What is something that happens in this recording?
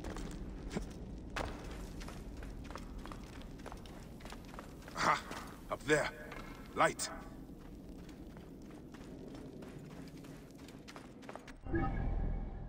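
Footsteps crunch on sand and stone.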